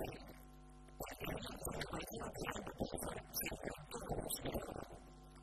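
A second middle-aged man talks over another speaker with animation.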